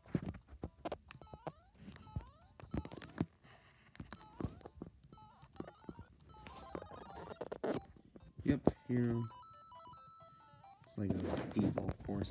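Upbeat electronic game music plays from a small speaker.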